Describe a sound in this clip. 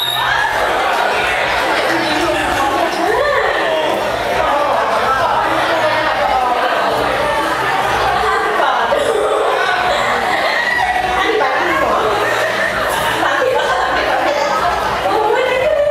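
A young woman sings into a microphone over loudspeakers.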